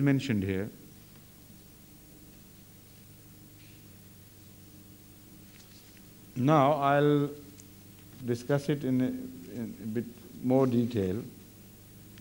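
An older man speaks slowly into a microphone, with long pauses.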